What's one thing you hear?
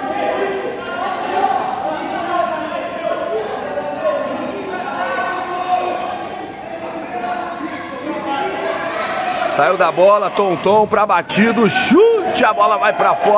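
Young men and boys chatter and call out in a large echoing hall.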